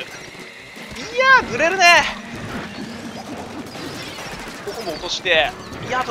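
Cartoonish paint blasters squirt and splat in a video game.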